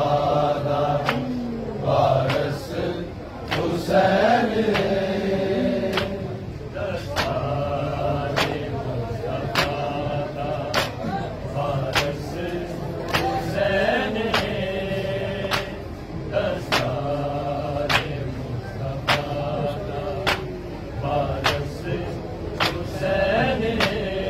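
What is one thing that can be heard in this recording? Men beat their chests in a slow, steady rhythm of sharp slaps.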